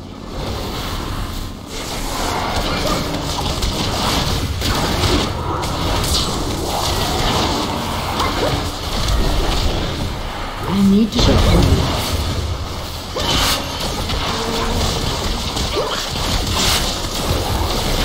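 Video game combat sound effects clash and burst.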